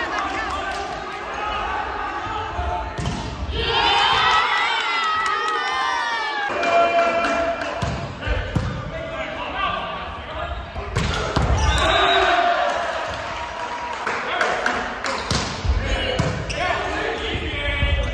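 A volleyball is struck with sharp smacks that echo in a large hall.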